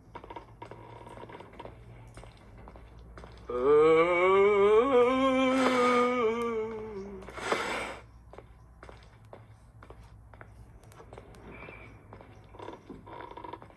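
Footsteps thud softly on creaky wooden floorboards.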